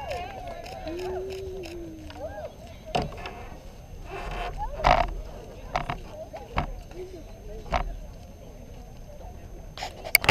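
A crowd of spectators cheers and shouts from a distance outdoors.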